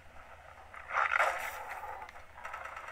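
A creature growls.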